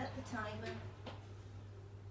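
An oven door shuts with a thud.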